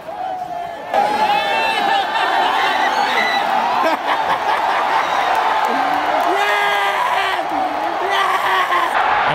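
A stadium crowd cheers and roars loudly.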